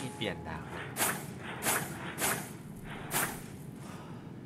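Blades swing through the air with sharp whooshes.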